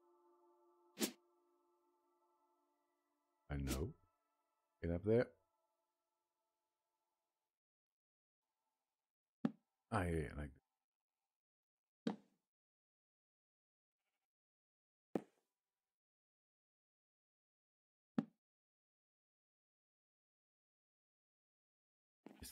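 Wooden blocks are placed with short, dull knocks, one at a time.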